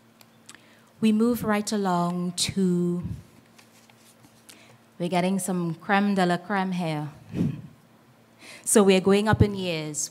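A young woman speaks calmly into a microphone, heard through a loudspeaker in a large room.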